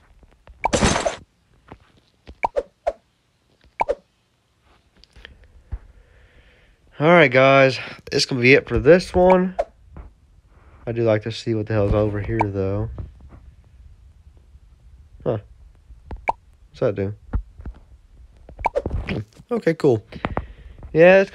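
Short soft clicks sound as game menus open and close.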